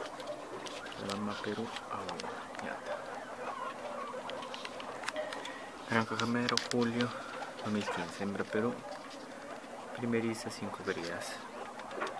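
Guinea pigs squeak and chirp.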